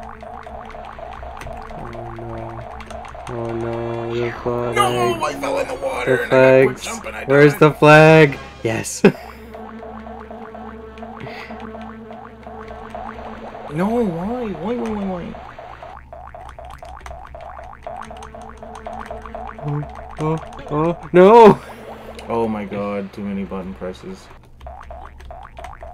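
Upbeat video game music plays with a steady beat.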